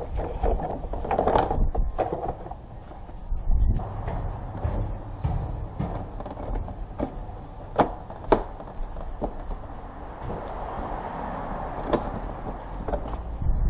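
Plastic car trim clicks and knocks as it is worked loose.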